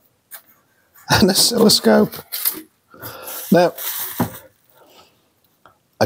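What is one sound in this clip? Hands slide and tap a cardboard box.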